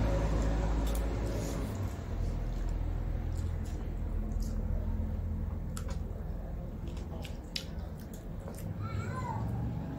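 Two young women chew and smack their lips loudly.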